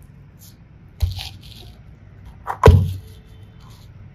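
A small plastic case knocks and clicks.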